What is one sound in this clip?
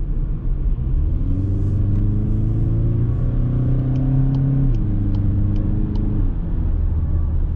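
A car engine revs up as the car speeds up, rising in pitch.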